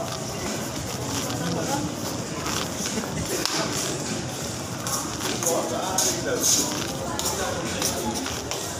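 People talk in the distance in a large echoing hall.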